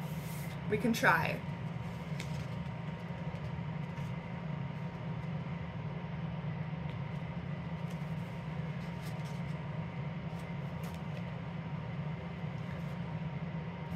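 Glossy paper pages of a book are flipped over.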